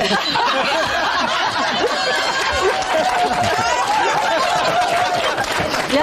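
A middle-aged woman laughs heartily close by.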